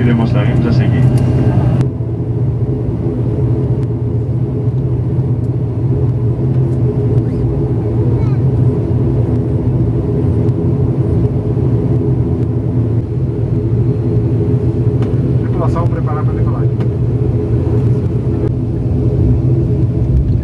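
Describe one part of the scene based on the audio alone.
An airplane's wheels rumble over the runway.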